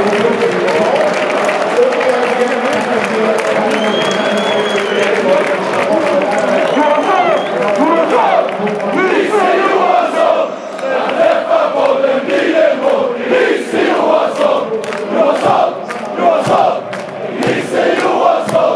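A large stadium crowd cheers, sings and chants loudly, echoing around the stands.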